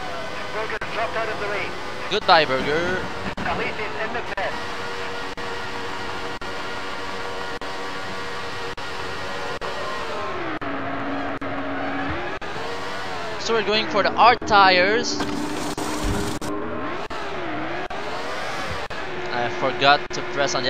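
A racing car engine drones steadily and revs up and down in whining sweeps.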